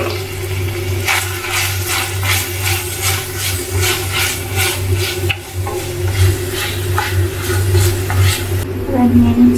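A spatula scrapes and clatters against a pan.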